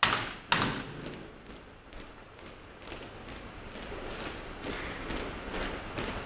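Boots tap in step on a hard floor.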